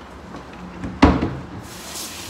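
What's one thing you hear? A dish knocks into a metal sink.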